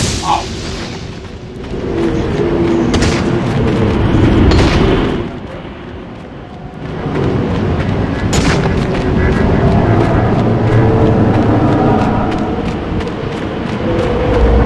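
A strong wind roars and howls, swelling and easing.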